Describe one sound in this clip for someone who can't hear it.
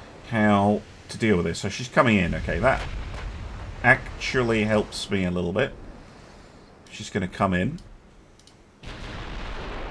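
Heavy ship guns fire with deep booms.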